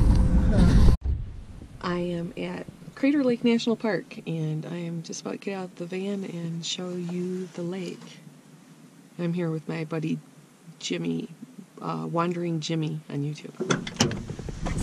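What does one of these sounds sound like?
A middle-aged woman talks cheerfully close to the microphone.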